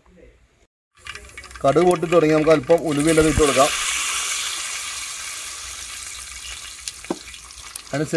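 Hot oil sizzles loudly in a pan.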